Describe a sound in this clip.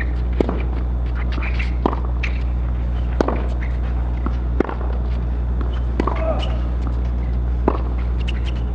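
A tennis ball is struck back and forth with sharp pops of rackets.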